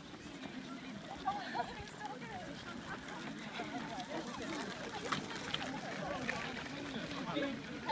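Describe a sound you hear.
A crowd of people talk and cheer outdoors.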